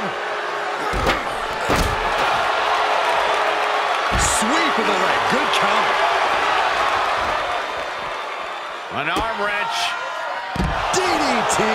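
Heavy blows thud as wrestlers slam into each other and the floor.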